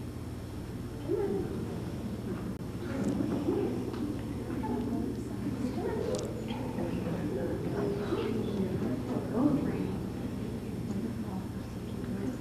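A crowd of adults murmurs and chats quietly in an echoing hall.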